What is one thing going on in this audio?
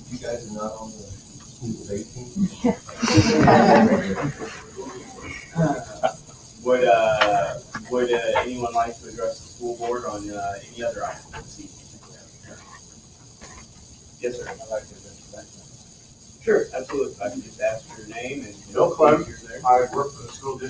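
An adult man speaks into a microphone and is heard through loudspeakers.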